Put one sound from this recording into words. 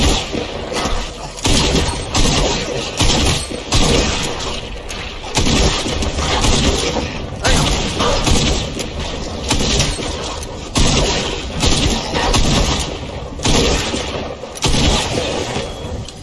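A gun fires in quick bursts.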